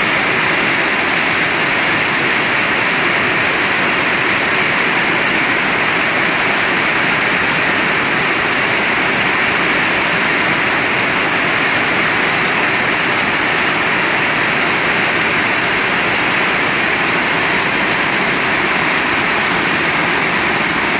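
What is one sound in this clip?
Rain drums on metal roofs and shutters.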